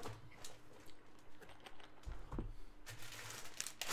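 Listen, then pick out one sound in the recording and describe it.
A plastic case clatters as it is set down on a table.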